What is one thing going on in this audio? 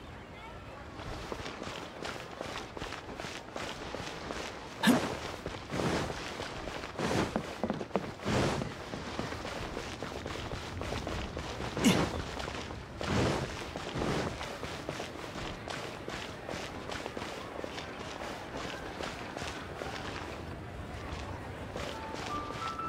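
Quick running footsteps patter on stone.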